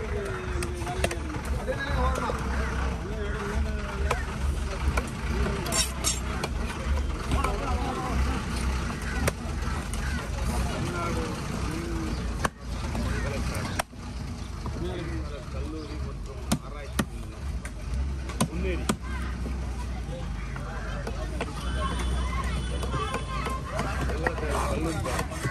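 A heavy blade chops into a wooden block with sharp thuds.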